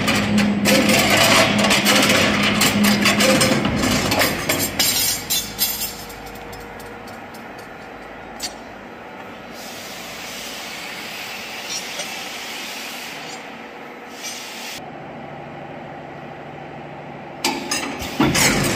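A machine whirs and clanks as it bends steel bar.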